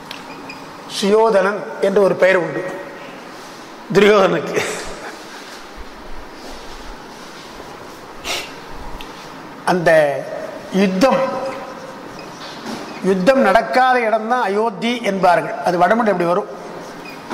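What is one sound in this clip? An elderly man speaks into a microphone in measured, recited phrases.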